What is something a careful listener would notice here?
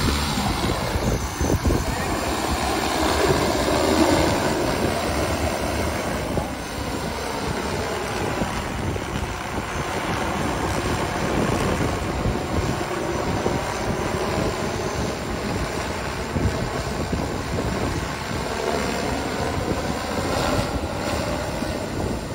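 A large drone's rotors drone loudly and steadily overhead.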